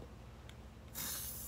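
An aerosol spray paint can hisses.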